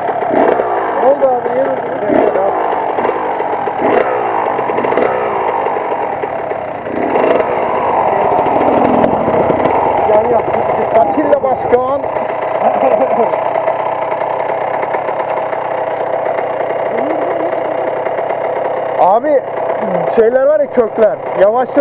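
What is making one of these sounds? Several dirt bike engines idle nearby with a steady drone.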